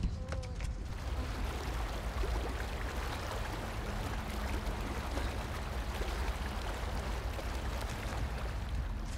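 Water splashes and sloshes as someone wades through it.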